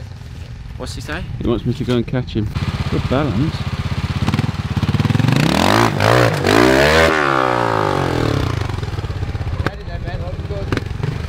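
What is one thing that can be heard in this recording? A trials motorbike engine putters and revs hard as it climbs over rocks.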